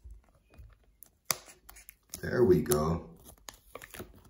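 A card is pulled out of a box with a soft rustle.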